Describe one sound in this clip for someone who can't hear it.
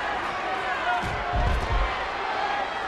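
A wrestler slams down hard onto the mat with booming thuds.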